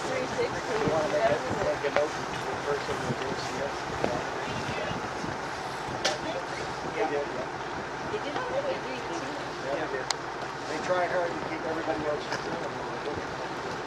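Small waves lap and splash on open water.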